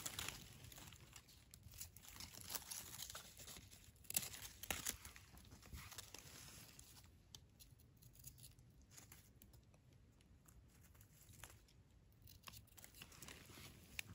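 A knife blade slices through a soft mushroom stem.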